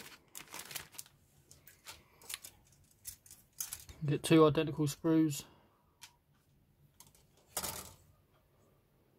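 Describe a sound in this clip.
Plastic parts clack and tap against each other.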